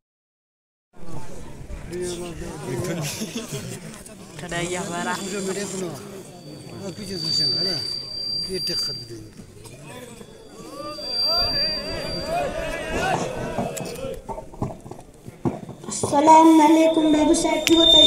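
A man speaks with animation through a microphone and loudspeaker outdoors.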